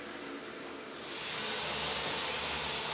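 Water sprays from a shower head onto a tub.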